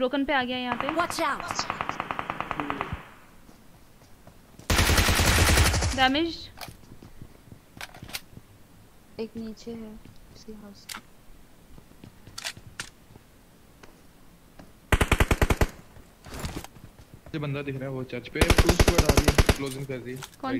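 Rapid gunfire bursts loudly in short volleys.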